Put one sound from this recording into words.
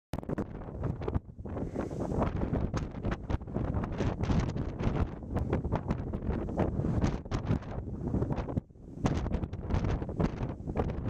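Tall grass rustles in the wind.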